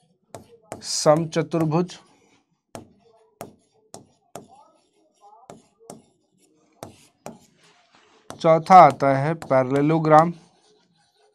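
A man speaks clearly and calmly into a close microphone.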